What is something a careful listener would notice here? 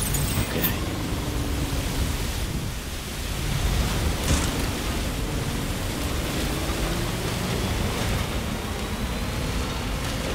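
A truck engine rumbles low as the truck drives over rough ground.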